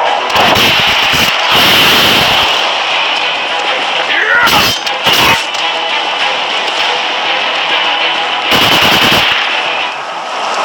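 Punches and blasts thud and crash in a video game fight.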